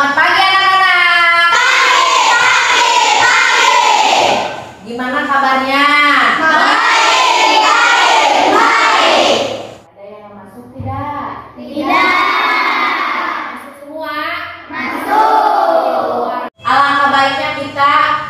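A woman sings with animation, close by.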